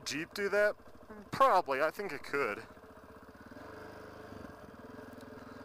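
A dirt bike engine hums steadily.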